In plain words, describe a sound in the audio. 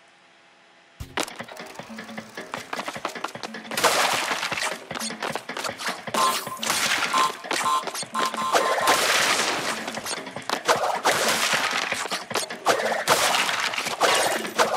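Bright chimes ring rapidly as items are collected.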